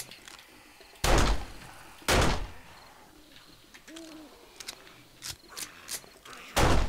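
A gun fires several loud, booming shots.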